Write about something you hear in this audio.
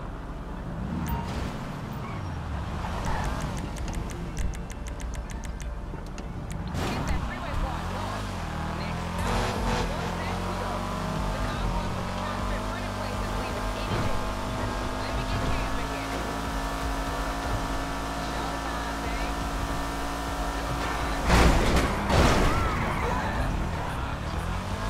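A car engine revs and hums as the car drives along.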